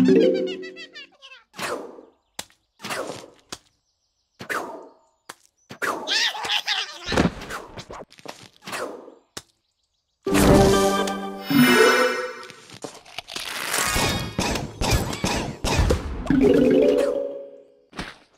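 Short game chimes and jingles ring out.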